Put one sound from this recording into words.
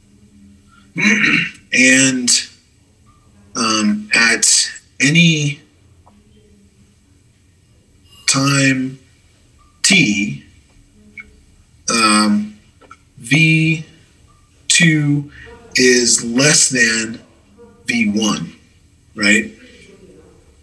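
A man lectures calmly into a microphone, in short phrases with pauses.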